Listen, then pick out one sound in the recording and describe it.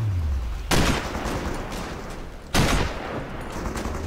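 A rifle fires twice with loud, echoing shots.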